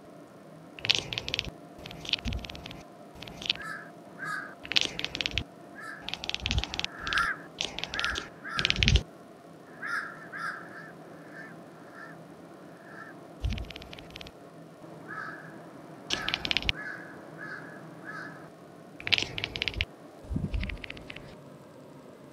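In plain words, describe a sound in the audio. A cat meows and chirps in short bursts.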